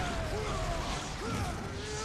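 A fiery explosion bursts with a roar.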